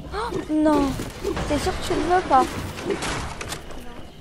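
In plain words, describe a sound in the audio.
A wooden wall breaks apart with a crash.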